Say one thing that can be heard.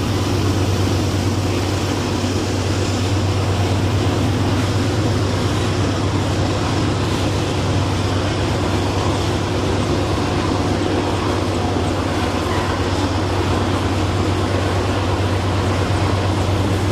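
A long freight train rumbles and clanks steadily along the rails nearby.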